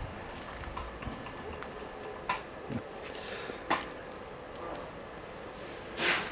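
A bear sniffs and snuffles close by.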